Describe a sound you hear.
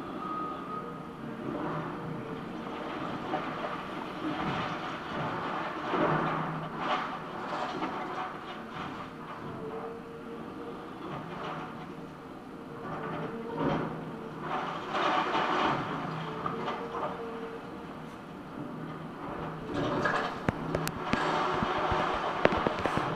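An excavator engine rumbles steadily.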